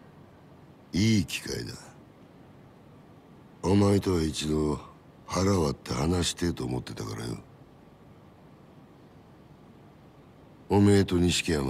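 A middle-aged man speaks firmly and calmly, close by.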